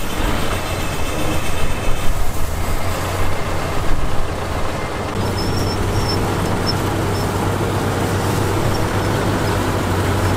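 A dump truck engine drones as the truck drives slowly.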